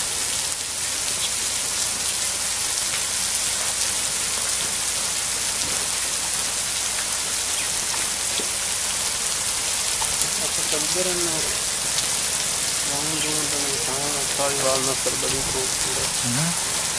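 Water sprinklers hiss steadily as they spray.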